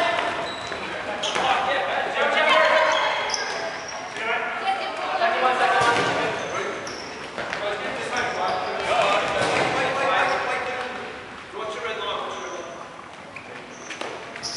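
Several young men shout and call out to each other in a large echoing hall.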